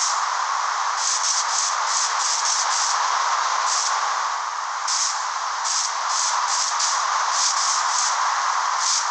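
Footsteps crunch on grass at a steady walking pace.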